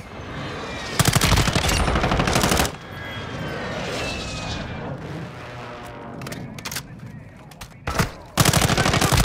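A rifle fires rapid bursts at close range.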